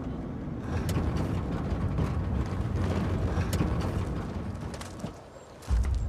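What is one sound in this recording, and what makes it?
A car engine rumbles low.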